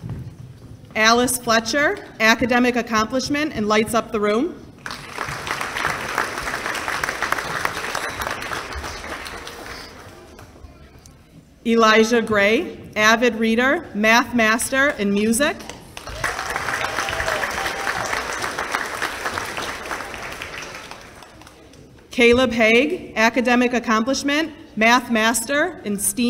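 A woman speaks clearly through a microphone and a loudspeaker in a large echoing hall.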